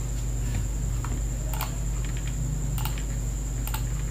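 Keys clatter on a keyboard.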